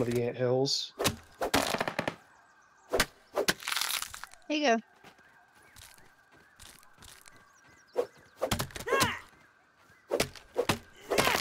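An axe chops dry grass stalks with sharp, repeated thwacks.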